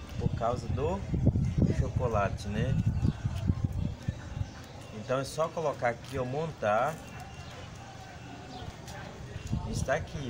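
Plastic wrappers rustle and crinkle in hands.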